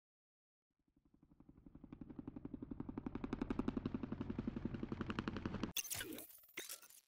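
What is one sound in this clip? A rapid machine gun rattles.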